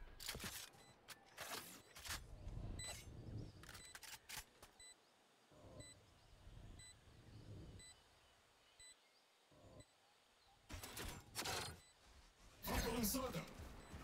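Game gunshots crack in short bursts.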